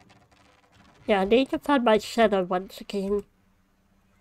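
A young person speaks with animation, close to a microphone.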